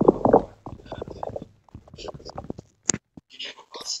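Wooden blocks knock and crack as they are broken in a game.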